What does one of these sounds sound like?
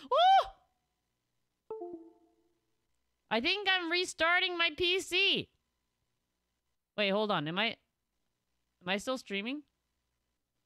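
A young woman speaks with animation through a microphone, in short bursts.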